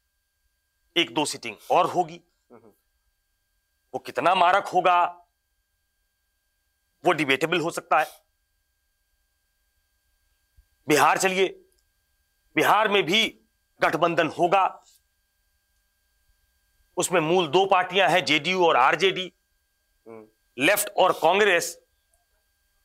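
A middle-aged man speaks with animation into a microphone, in short bursts with silent pauses.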